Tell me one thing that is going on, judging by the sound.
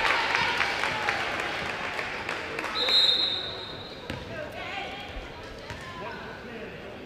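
A crowd cheers loudly in a large echoing gym and gradually quiets down.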